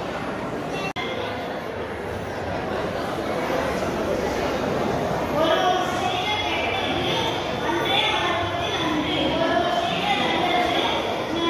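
A second young boy speaks into a microphone loudly and with animation, heard through loudspeakers.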